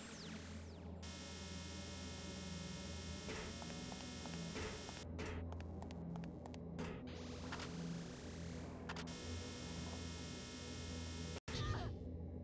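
A laser beam crackles and hums.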